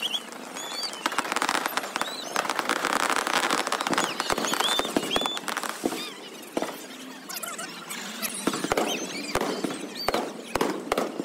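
Whistling fireworks rise into the air.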